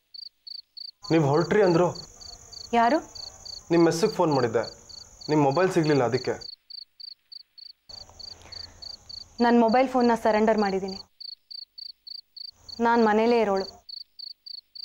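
A young man speaks tensely close by.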